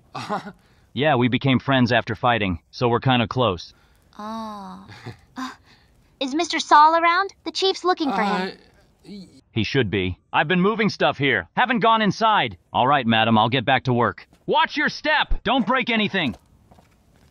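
A man speaks cheerfully and with animation close by.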